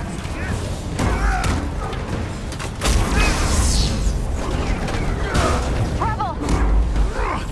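Energy blasts burst and crackle loudly.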